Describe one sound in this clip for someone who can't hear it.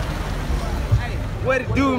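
A crowd talks and shouts outdoors.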